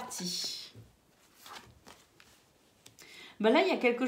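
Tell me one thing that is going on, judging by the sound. A card is laid down softly on a cloth-covered table.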